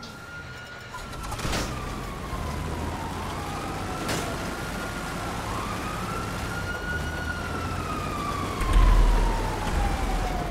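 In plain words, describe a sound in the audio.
A heavy vehicle's engine rumbles as it drives along.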